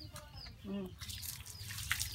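Water splashes as it is poured over a dog.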